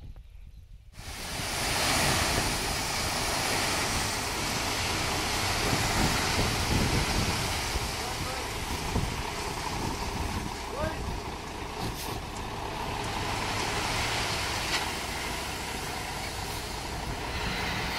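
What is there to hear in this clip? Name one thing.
Gravel pours and rumbles out of a tipping truck bed.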